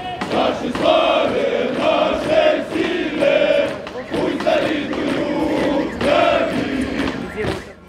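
Soldiers' boots march in step on asphalt.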